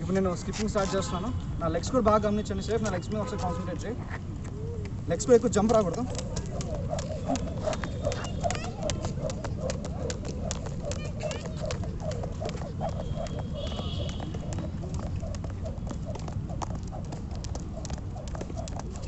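A skipping rope slaps rapidly on concrete.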